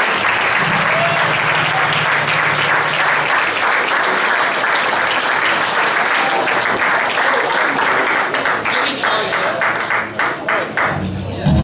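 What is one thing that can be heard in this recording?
A large crowd cheers and claps loudly in a big hall.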